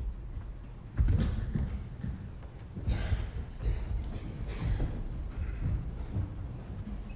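Feet thump and land heavily on a wooden stage floor.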